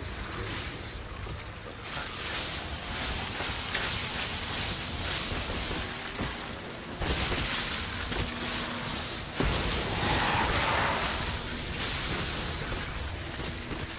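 A gun fires rapidly.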